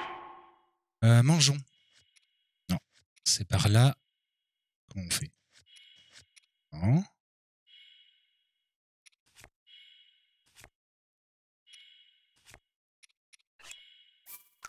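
Short menu clicks and chimes sound as items are browsed.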